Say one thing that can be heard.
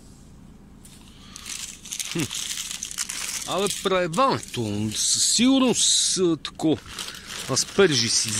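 A plastic shopping bag crinkles and rustles loudly.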